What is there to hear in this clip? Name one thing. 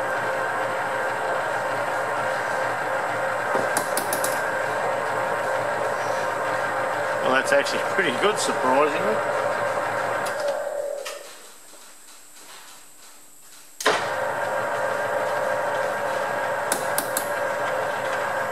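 A lathe motor hums steadily as the chuck spins.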